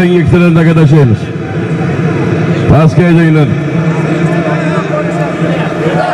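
A large crowd murmurs and shouts outdoors.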